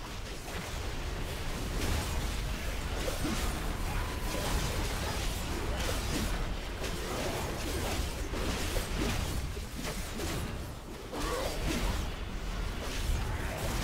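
Spell effects whoosh and crackle in a busy fight.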